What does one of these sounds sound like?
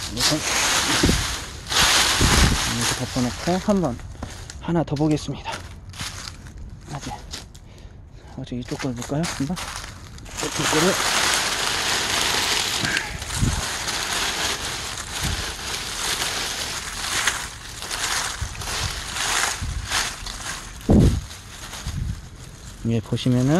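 Dry leaves rustle and crackle close by.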